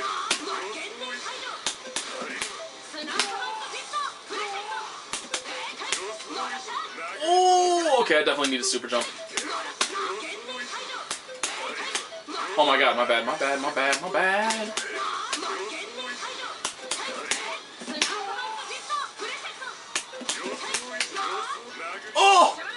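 Punches and kicks land with sharp, rapid hits.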